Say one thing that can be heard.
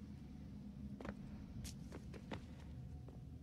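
Footsteps run across a stone floor.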